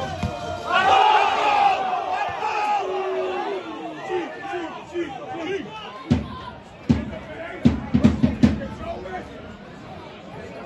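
A large stadium crowd cheers and sings loudly outdoors.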